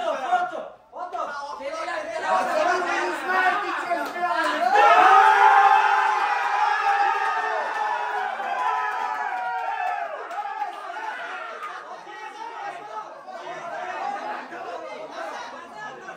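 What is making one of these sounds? A group of young men cheer and chant loudly in an echoing room.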